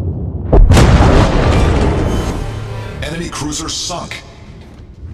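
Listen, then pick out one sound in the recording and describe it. A ship explodes with a roaring blast.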